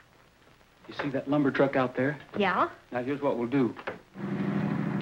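A man and a woman talk together close by.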